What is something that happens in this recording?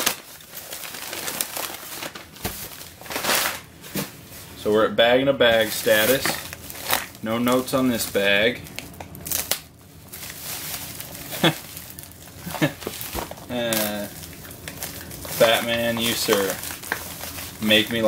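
A plastic mailing bag rustles and crinkles as it is handled and slid across carpet.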